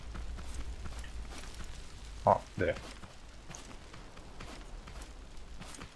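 Footsteps tread on grass.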